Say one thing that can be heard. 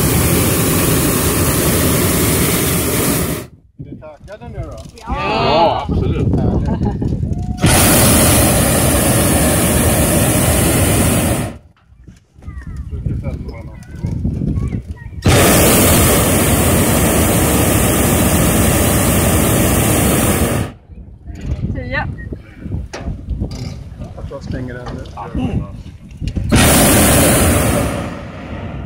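A hot-air balloon's propane burner roars in bursts.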